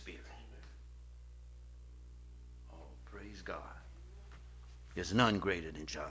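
A man speaks slowly and solemnly into a microphone.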